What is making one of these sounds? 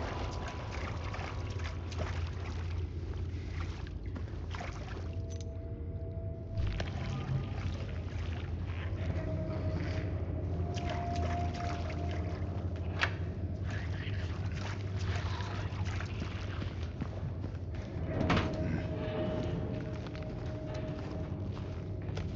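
Footsteps scuff along a damp stone floor.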